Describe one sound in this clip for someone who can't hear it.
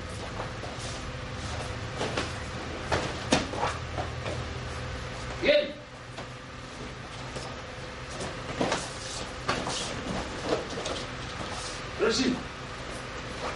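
Bodies thud and clothing snaps as two men spar.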